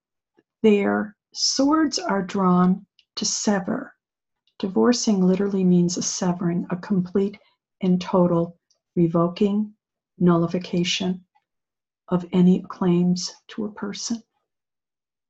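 An older woman speaks with animation into a close microphone.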